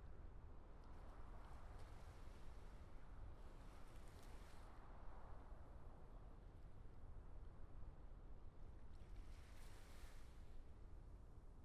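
Spaceships whoosh past now and then.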